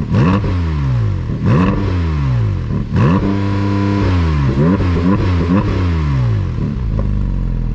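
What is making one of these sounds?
A sports car engine revs sharply up and down while standing still.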